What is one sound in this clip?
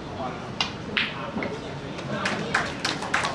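Snooker balls clack together on the table.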